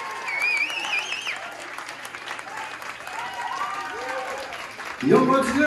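Young women whoop and cheer excitedly nearby.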